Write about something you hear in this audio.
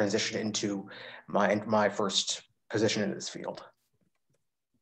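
A young man speaks calmly and close to the microphone, heard through an online call.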